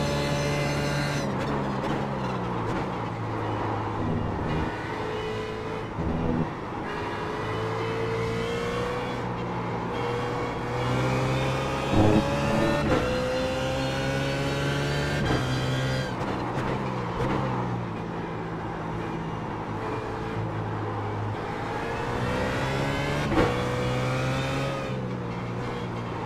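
A racing car engine roars, revving up through the gears and dropping as it brakes.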